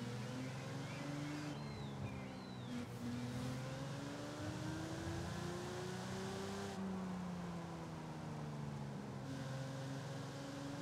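A sports car engine drones steadily, its pitch shifting up and down with the gears.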